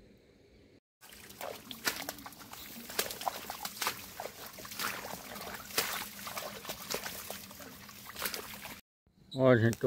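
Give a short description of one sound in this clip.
A small animal rustles through dry grass and leaves.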